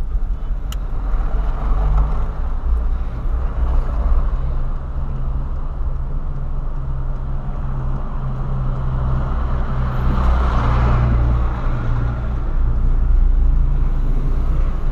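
A car engine hums steadily from inside the car, rising and falling as it changes speed.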